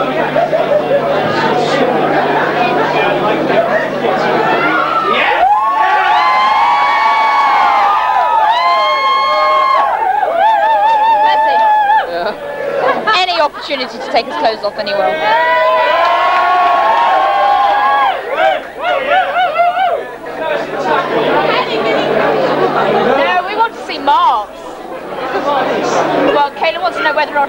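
A rock band plays loudly in an echoing hall.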